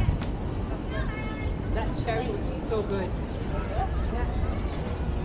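Children shout and play at a distance.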